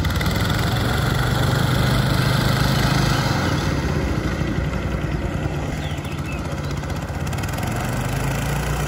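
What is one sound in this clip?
A petrol lawn mower engine drones steadily close by.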